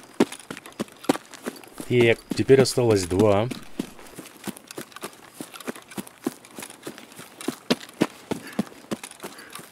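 Footsteps crunch steadily through grass and brush.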